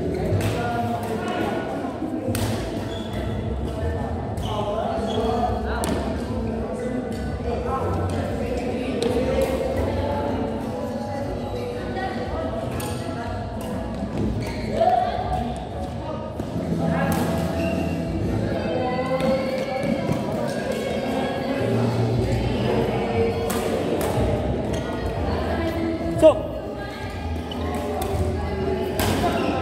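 Several people chatter in the background of a large echoing hall.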